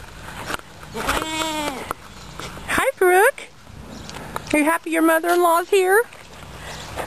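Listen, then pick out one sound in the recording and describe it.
A goat bleats loudly and close by, several times.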